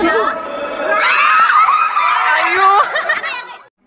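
Young women laugh and cheer loudly.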